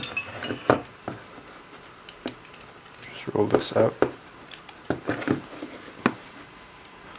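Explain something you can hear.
Hands bump and rustle against a cardboard box close by.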